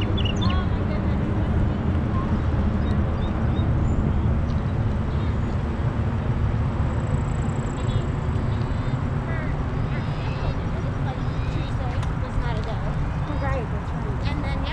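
Wind buffets the microphone outdoors while riding.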